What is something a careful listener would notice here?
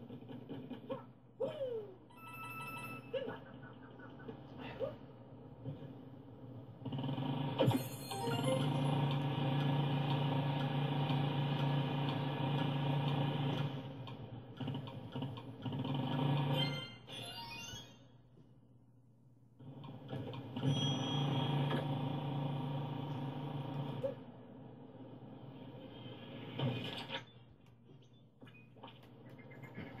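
Video game music and effects play from a television.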